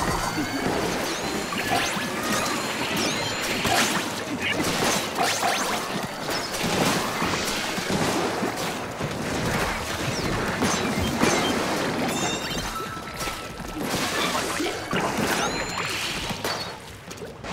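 Shots of paint spray and splatter in quick bursts.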